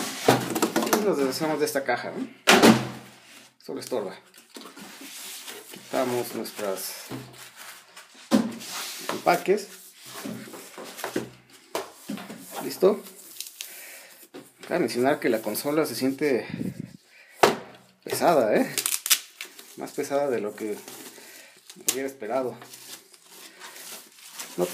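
Plastic foam wrapping crinkles and rustles under handling hands.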